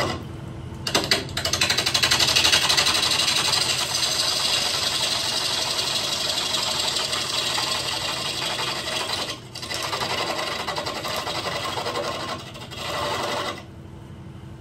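A chisel scrapes and cuts loudly against spinning wood.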